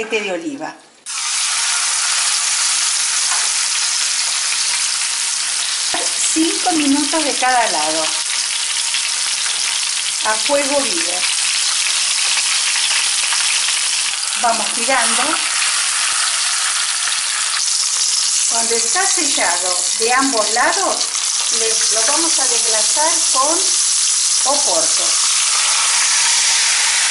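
Meat sizzles loudly in hot oil in a pan.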